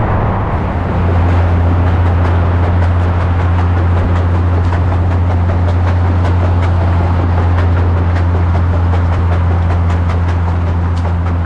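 A towed trailer rattles and clicks over the road.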